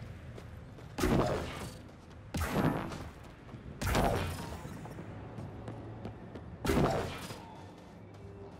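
Electric energy crackles and whooshes in loud bursts.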